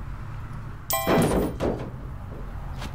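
Heavy furniture crashes down into a metal skip with a hollow clang.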